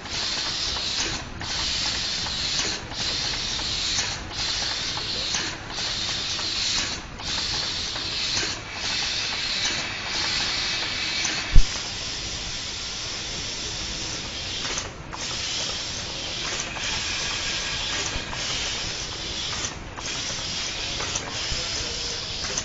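Robotic machinery whirs steadily as a conveyor belt runs.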